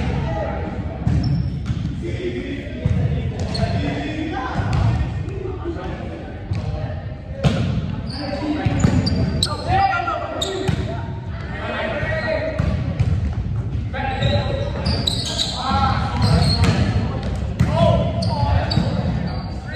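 Young men call out and shout to each other in a large echoing gym.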